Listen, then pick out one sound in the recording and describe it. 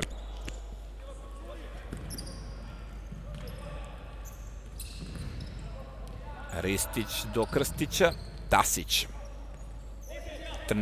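Sneakers squeak sharply on a hard indoor court.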